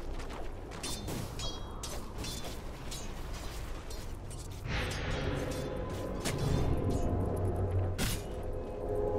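Short impacts thud and clang.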